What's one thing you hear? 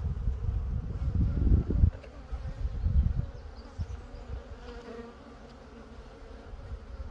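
Bees hum in a steady, busy drone.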